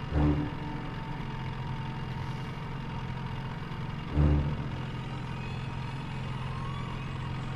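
A low machine hum drones steadily.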